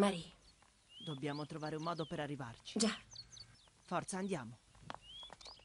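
A young boy speaks anxiously, close by.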